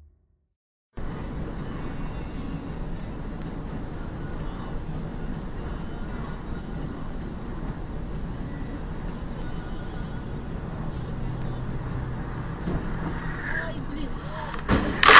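A vehicle's engine hums steadily.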